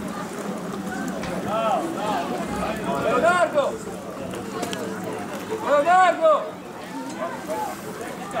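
Young players shout and call to each other outdoors on an open field.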